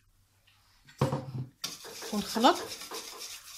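A hand stirs and squelches a wet mixture in a metal bowl.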